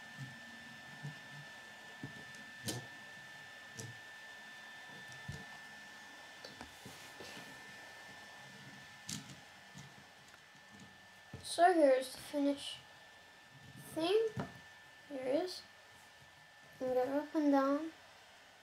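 Plastic toy wheels click and knock on a wooden table.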